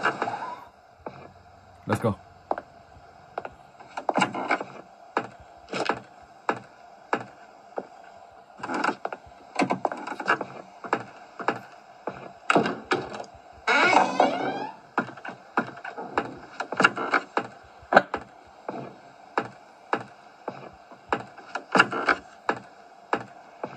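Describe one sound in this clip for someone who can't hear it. Footsteps thud steadily on a wooden floor through a small tablet speaker.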